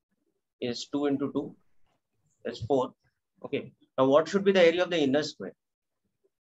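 A man speaks calmly and closely into a microphone, explaining.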